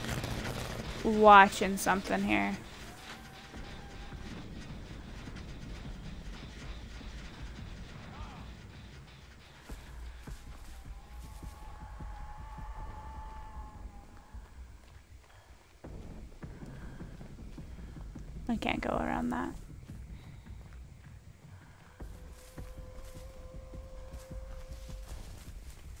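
Quick footsteps rustle through grass and leaves.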